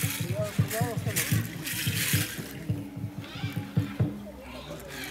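Rattles on dancers' ankles shake and clatter.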